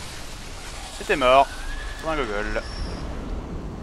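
A monster lets out wet, screeching cries.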